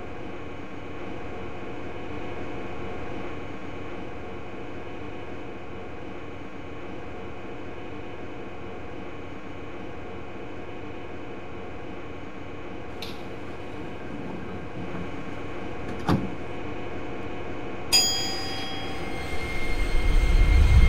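A train hums steadily while idling at a platform.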